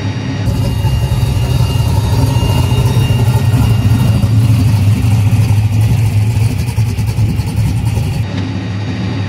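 A race car engine idles with a deep, loud rumble outdoors.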